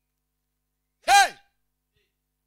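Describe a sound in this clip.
A man shouts out one loud cry through a microphone.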